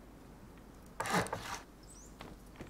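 A wooden wall thuds into place with a rushing clatter.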